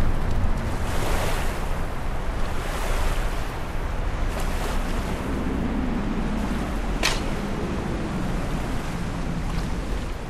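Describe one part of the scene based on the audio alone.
Water splashes steadily underfoot as someone wades.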